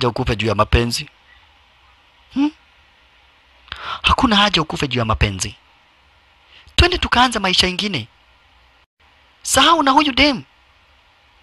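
A young man speaks in a tense, low voice up close.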